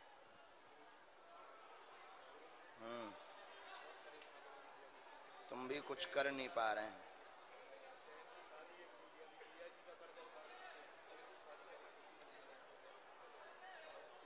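A large crowd murmurs in a big open space.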